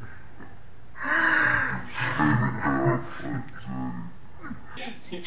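A young woman and a man laugh together.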